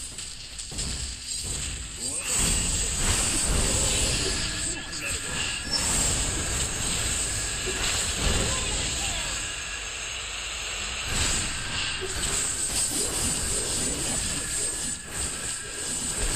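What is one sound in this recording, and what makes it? Video game combat effects whoosh and crash rapidly.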